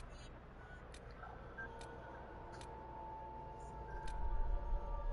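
Soft menu clicks tick as a slider setting changes.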